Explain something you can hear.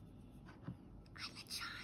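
A plastic stick knocks against a plastic tub.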